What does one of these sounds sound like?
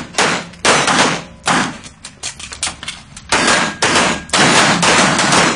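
Pistol shots ring out in quick bursts in an echoing indoor range.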